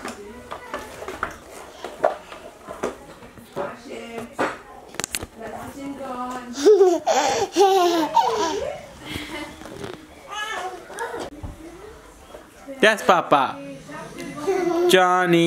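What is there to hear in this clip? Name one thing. A toddler girl babbles and squeals close by.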